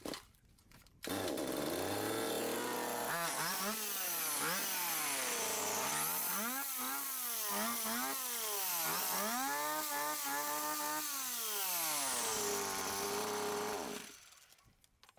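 A string trimmer engine runs and revs up and down.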